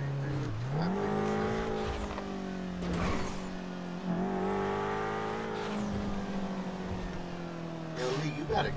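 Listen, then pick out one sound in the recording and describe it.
A car engine hums and revs up and down as the car drives along.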